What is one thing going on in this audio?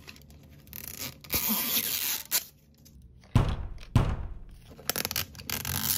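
Plastic packaging crinkles and rustles under fingers.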